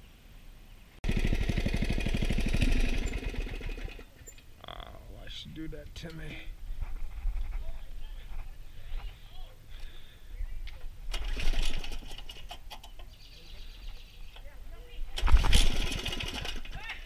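A small kart engine buzzes loudly and revs up and down.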